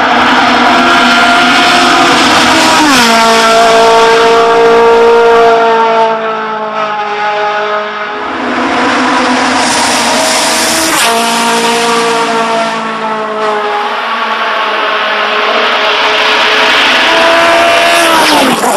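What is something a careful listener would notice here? A racing car engine screams loudly at high revs.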